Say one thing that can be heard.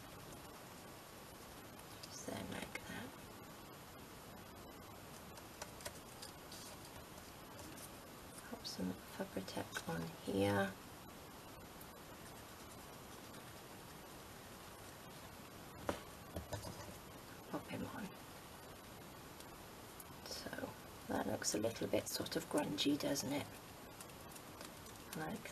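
Small pieces of card rustle and tap softly against a table.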